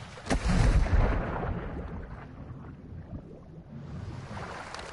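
Water gurgles and bubbles underwater, muffled.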